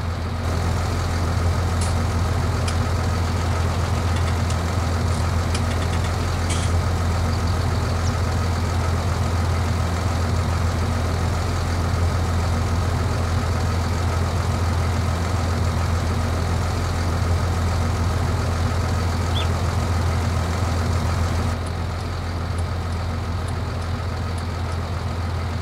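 A tractor engine idles with a steady, low rumble.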